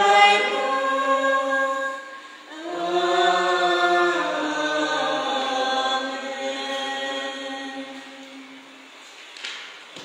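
Men sing a slow hymn together in an echoing room.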